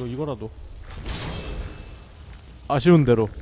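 A magic spell bursts with a loud crackling whoosh.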